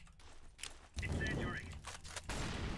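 A young man speaks into a microphone with animation.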